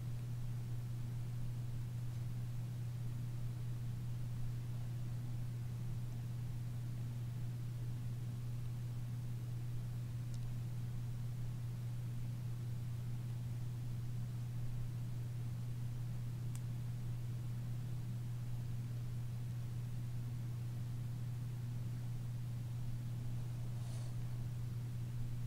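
Yarn rustles softly as a hook pulls it through loops.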